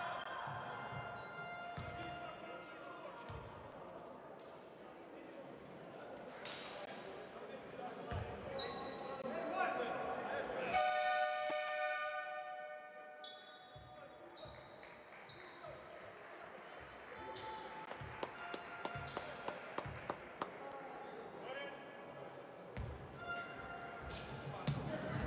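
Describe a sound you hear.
Sneakers squeak sharply on a hard court.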